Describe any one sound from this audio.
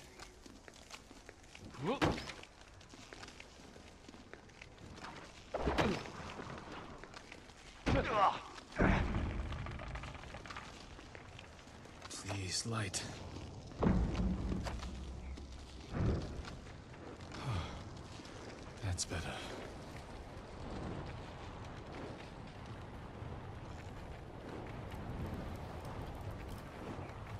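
Wind blows steadily through snow.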